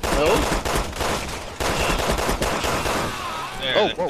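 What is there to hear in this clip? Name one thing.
Rapid gunfire cracks and echoes.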